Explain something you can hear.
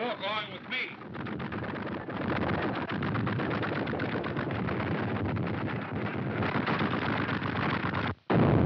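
A loud rumbling roar of an explosion and falling debris fills the air.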